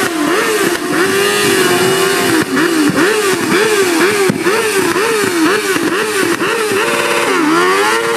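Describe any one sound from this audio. A motorcycle engine revs hard and repeatedly up close.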